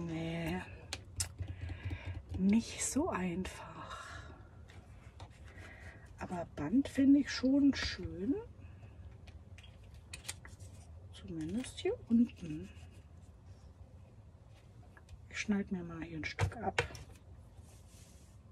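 Paper and ribbon rustle softly as they are handled.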